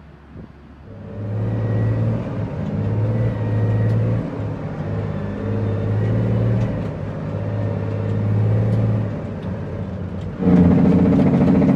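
A truck's diesel engine rumbles loudly as it drives.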